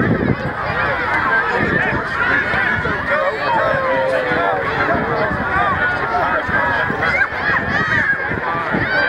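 Children shout to each other while playing football.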